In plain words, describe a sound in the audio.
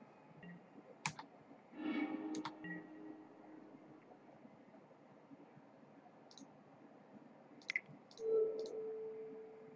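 A card game gives short digital clicks and chimes as cards are played.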